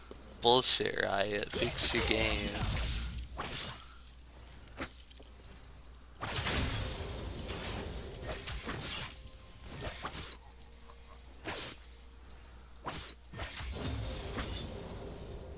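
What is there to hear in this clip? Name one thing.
Magic spells whoosh and blast in a fast battle.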